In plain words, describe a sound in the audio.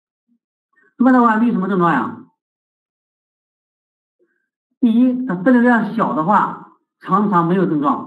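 A man lectures calmly into a close microphone.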